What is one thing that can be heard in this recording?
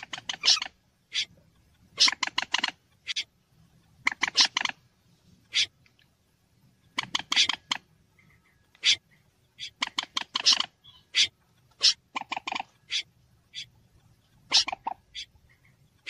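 Water birds call in sharp, repeated bursts of chattering cries.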